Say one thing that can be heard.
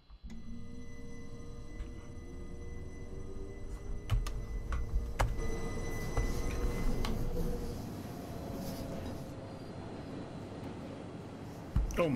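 A train's motor hums and rumbles steadily.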